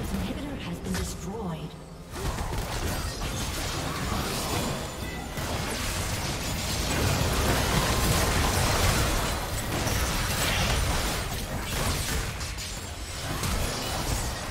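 Magic blasts and clashing hits crackle in a busy video game fight.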